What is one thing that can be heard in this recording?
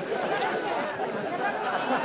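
Men laugh heartily around a table.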